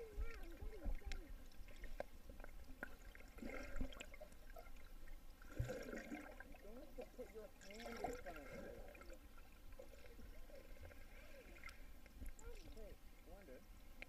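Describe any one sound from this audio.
Young girls' voices sound muffled and warbling underwater.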